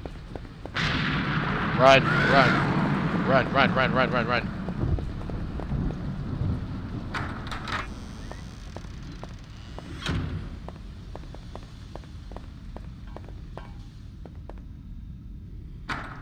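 Footsteps echo steadily on a hard floor.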